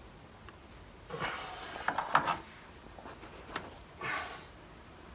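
Metal parts click and clack as a man fits them by hand.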